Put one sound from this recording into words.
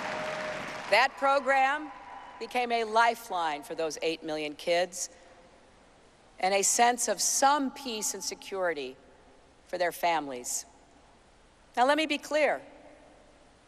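A middle-aged woman speaks into a microphone over loudspeakers, in a measured, earnest tone.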